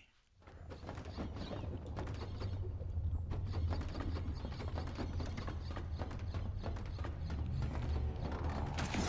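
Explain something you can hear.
Footsteps patter quickly over hard ground.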